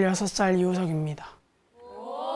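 A teenage boy speaks calmly, close up.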